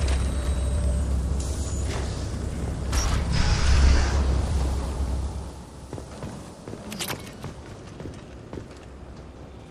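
Heavy armoured footsteps clank on a metal floor.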